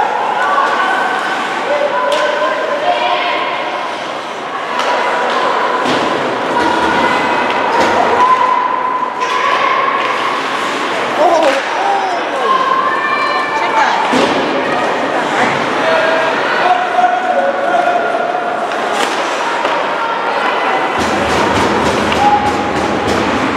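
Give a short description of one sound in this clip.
Hockey sticks clack sharply against the puck.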